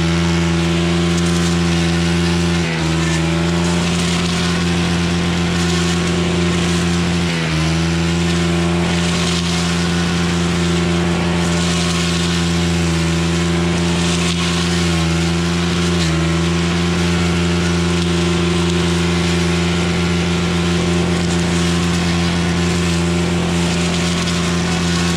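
The trimmer line whips and swishes through leafy weeds.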